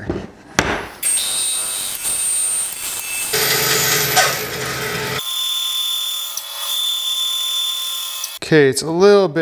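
A band saw whirs and cuts through wood.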